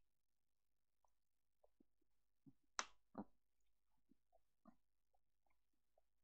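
A man gulps a drink from a plastic bottle.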